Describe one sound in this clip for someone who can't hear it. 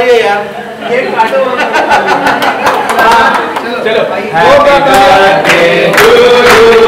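A group of men and women sing together loudly and cheerfully.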